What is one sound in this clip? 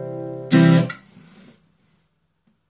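A resonator guitar chord rings out loudly, then fades away.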